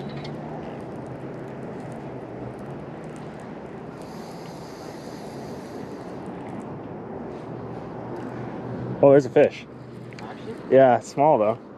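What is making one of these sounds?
Water laps softly against a boat's hull.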